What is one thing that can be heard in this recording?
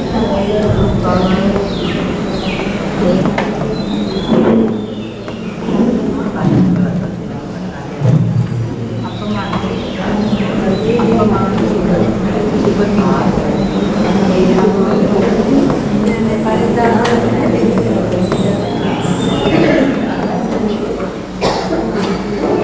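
A man speaks steadily and calmly, close by.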